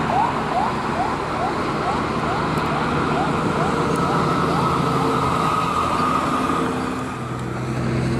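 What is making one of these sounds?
A heavy truck engine drones as it drives along a road.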